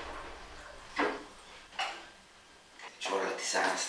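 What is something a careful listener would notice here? Dishes and a pan clatter on a counter.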